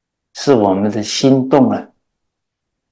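A middle-aged man speaks calmly and closely into a microphone.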